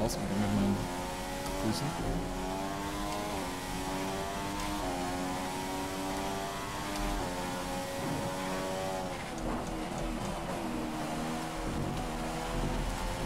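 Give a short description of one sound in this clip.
A racing car engine whines loudly, rising in pitch as it speeds up and dropping as gears shift.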